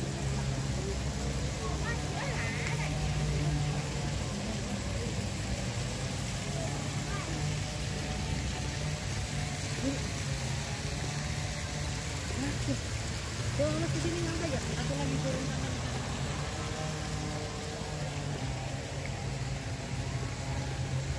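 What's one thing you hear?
Water splashes steadily from a fountain into a pool.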